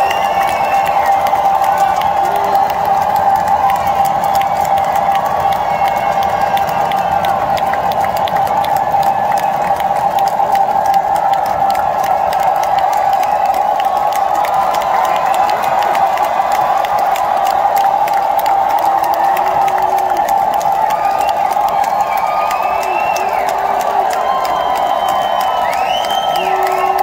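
A woman sings into a microphone over the band.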